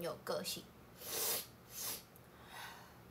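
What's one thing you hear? A young woman sighs and breathes out softly.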